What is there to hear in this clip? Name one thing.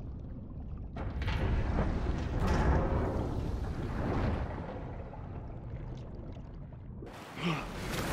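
Water rushes and churns loudly.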